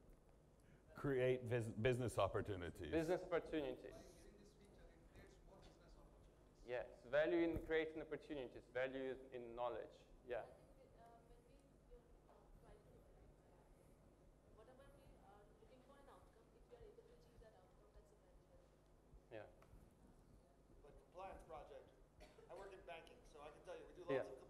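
A young man speaks calmly through a microphone, with pauses.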